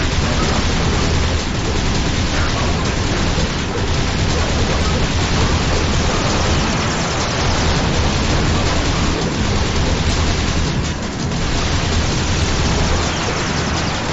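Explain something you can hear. Laser blasts fire in quick bursts.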